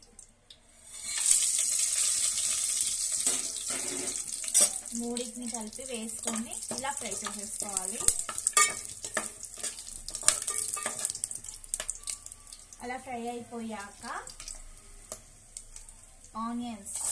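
Whole spices sizzle loudly in hot oil.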